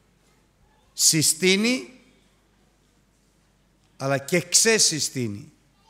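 An elderly man speaks with feeling into a microphone, in short phrases with pauses.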